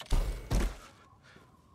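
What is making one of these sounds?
A knife stabs wetly into flesh.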